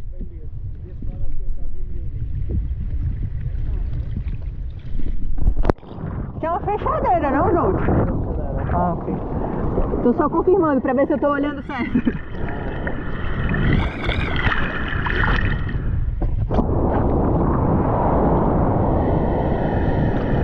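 Wind rumbles over the water.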